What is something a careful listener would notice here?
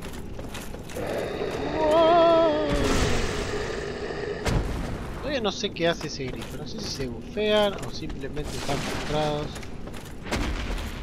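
A large beast growls and roars.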